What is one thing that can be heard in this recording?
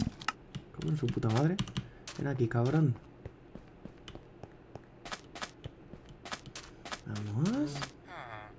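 Footsteps patter on sand.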